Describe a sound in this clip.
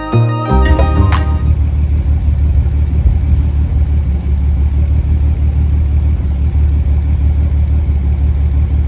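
A car engine idles with a low, uneven rumble.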